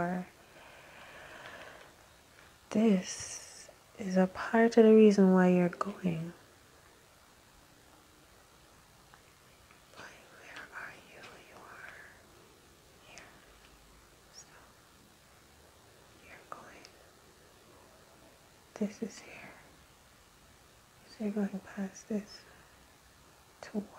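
A hand slides playing cards softly across a cloth.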